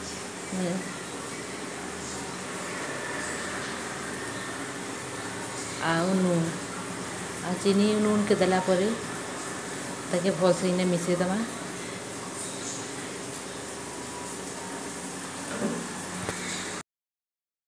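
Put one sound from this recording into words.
A spoon stirs and scrapes against a metal bowl.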